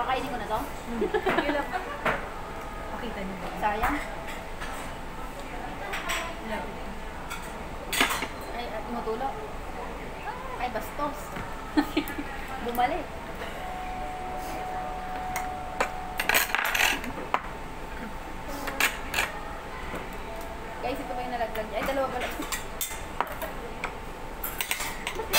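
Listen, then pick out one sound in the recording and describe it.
Young women talk nearby.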